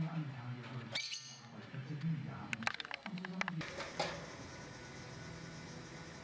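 A small bird flutters its wings on a wire cage.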